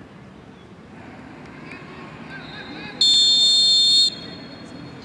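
Distant spectators murmur and call out outdoors.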